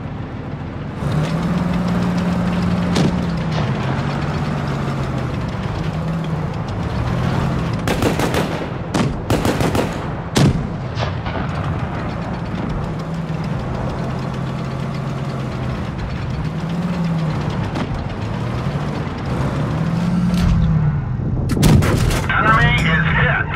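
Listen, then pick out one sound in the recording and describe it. A tank engine rumbles and whines steadily as the tank drives.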